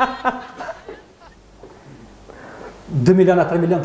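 A young woman laughs softly close to a microphone.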